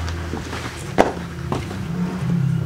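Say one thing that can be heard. Footsteps tap on a hard floor nearby.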